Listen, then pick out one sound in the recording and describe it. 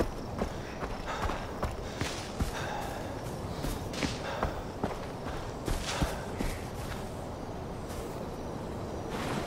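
Footsteps rustle through grass at a steady walking pace.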